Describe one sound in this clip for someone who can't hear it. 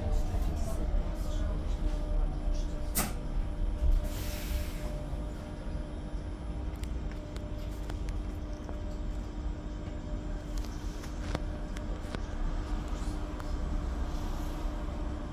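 A bus engine hums steadily with a low rumble as the bus drives along.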